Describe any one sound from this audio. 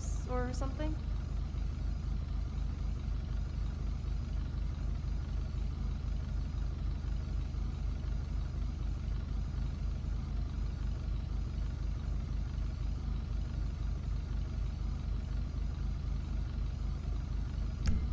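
A car engine idles with a low, steady, throbbing rumble.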